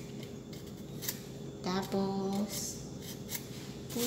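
A knife chops on a cutting board.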